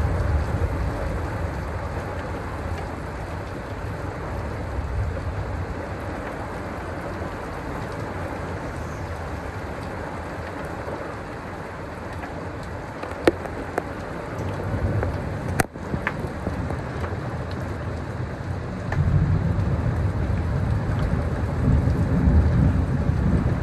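Wind gusts roar in low rumbles.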